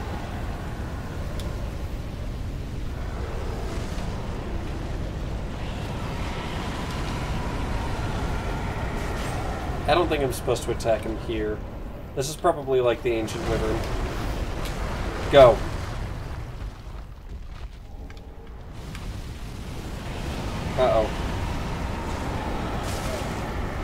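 Fire roars in a loud burst of flame.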